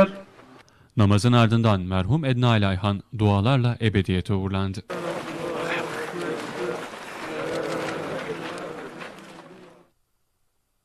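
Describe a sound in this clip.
A crowd of men chant together.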